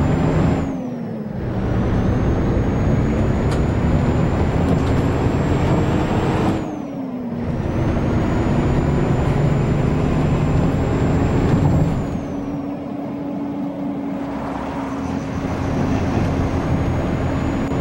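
A bus engine hums steadily, dropping in pitch at gear changes.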